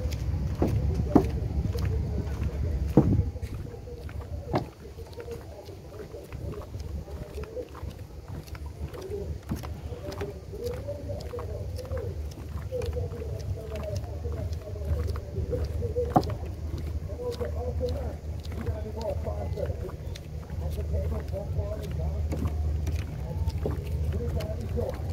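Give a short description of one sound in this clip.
Footsteps thud on a wooden boardwalk.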